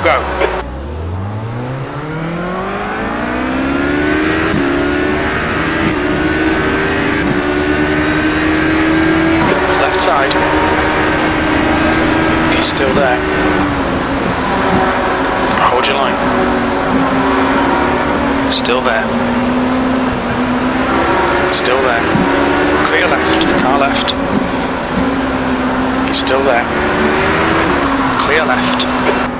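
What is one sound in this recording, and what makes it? A racing prototype engine accelerates hard, rising in pitch and shifting up through the gears.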